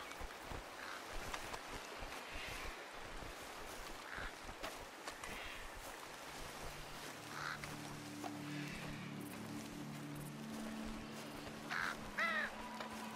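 Birds chirp and call in the open air.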